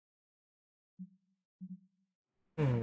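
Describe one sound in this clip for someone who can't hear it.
A game menu gives soft blips as options are selected.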